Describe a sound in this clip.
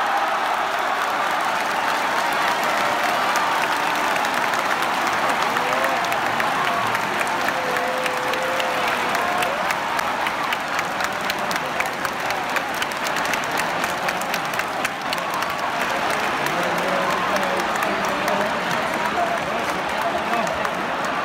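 A large crowd cheers and shouts loudly in a big echoing stadium.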